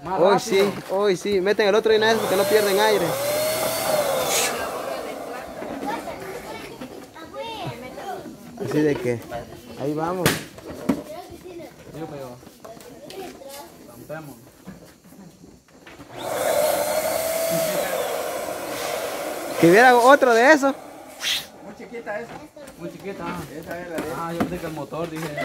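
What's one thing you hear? Young men and women talk and laugh nearby.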